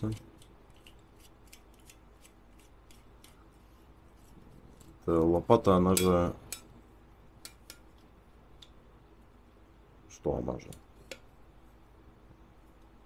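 A folding metal shovel clicks and clacks as it is handled.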